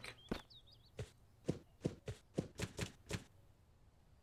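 Footsteps knock on a wooden ladder in quick, even steps.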